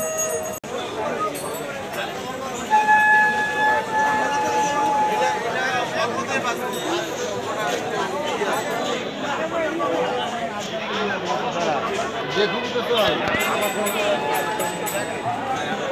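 A crowd of people chatters and murmurs all around outdoors.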